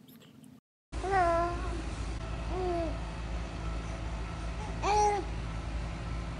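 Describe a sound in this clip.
A baby cries out with short wails.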